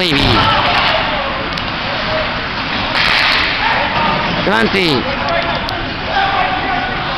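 Skates scrape and hiss across the ice in an echoing rink.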